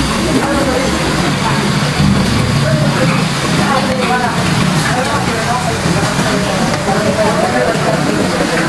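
A crowd of diners chatters throughout in a busy, noisy room.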